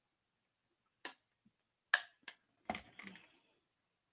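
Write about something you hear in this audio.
A plastic cup taps lightly a few times.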